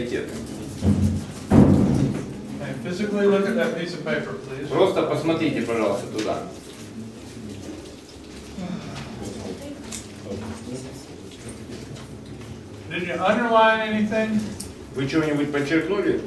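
An older man speaks calmly to a room, his voice slightly echoing.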